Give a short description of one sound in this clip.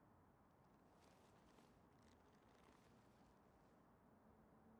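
A heavy metal sword rattles softly as it is lifted.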